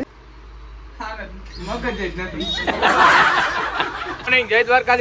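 A man laughs nearby.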